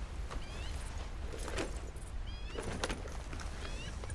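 A saddle creaks as a rider climbs onto a horse.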